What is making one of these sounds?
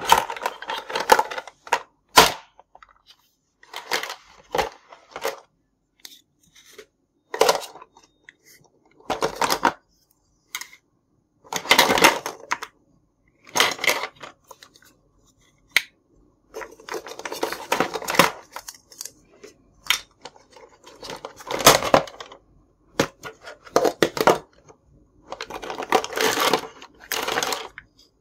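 Plastic toy dishes clatter and knock together as they are handled.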